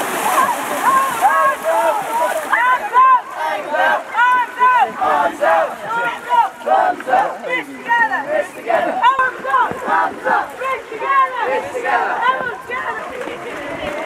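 A group of children sings a song together.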